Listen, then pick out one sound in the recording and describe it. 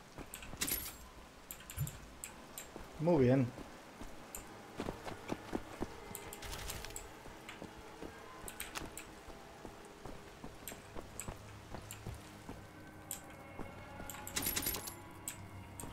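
Footsteps tap on stone floors throughout.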